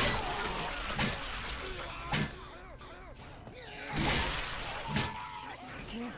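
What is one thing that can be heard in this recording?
A heavy blade swings and strikes with loud, sharp thuds.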